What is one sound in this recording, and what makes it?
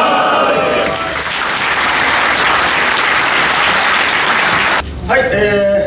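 A group of people clap their hands in steady applause.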